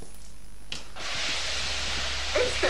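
Water patters steadily down from above.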